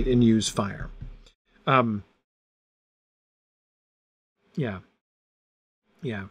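A middle-aged man reads aloud in short phrases, close to a microphone.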